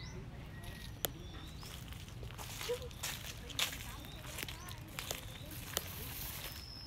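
Dry leaves crunch underfoot as a woman walks.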